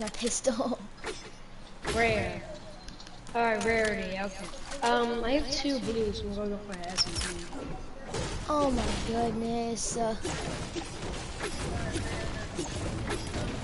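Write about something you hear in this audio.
A pickaxe thuds repeatedly against a tree trunk.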